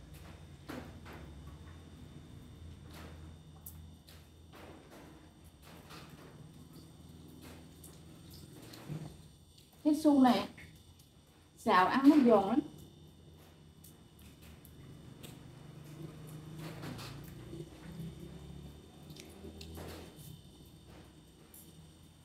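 A young woman chews food with soft, wet mouth sounds close up.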